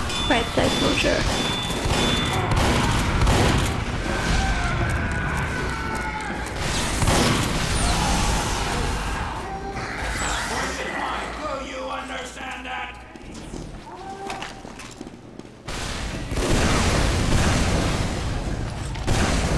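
Shotgun blasts fire in quick bursts.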